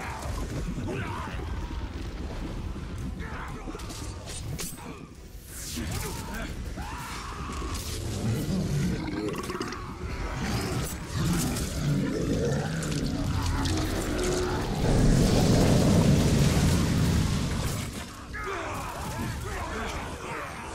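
A large creature stomps heavily and climbs.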